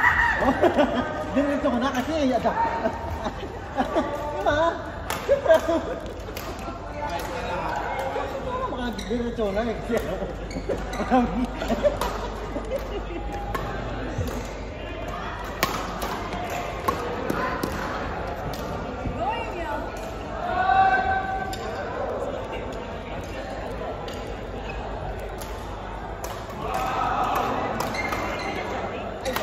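Young men and women talk and call out in a large echoing hall.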